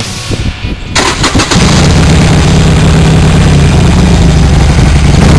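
A motorcycle engine starts up and rumbles steadily close by.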